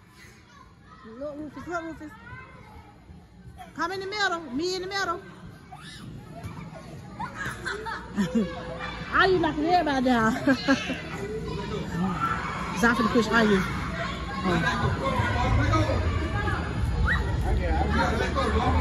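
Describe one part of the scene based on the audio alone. Children shout and squeal playfully in a large echoing hall.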